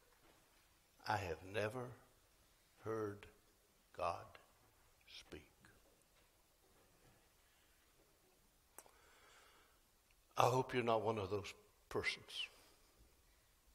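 An elderly man speaks slowly in short bursts with long pauses.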